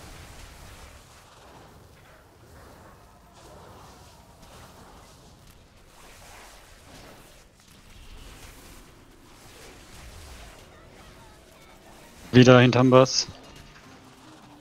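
Magic spells whoosh and crackle in quick bursts during a fight.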